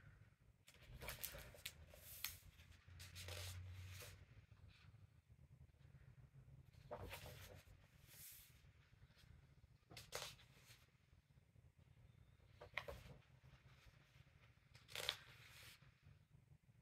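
Paper pages of a coloring book are flipped and rustle.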